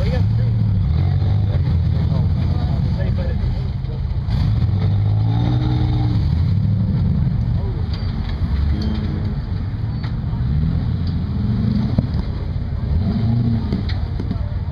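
An off-road vehicle's engine rumbles low and revs up and down as it crawls over rocks.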